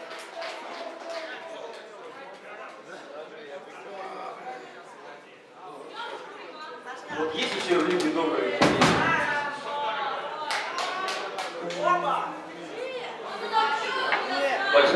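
Drums pound and cymbals crash.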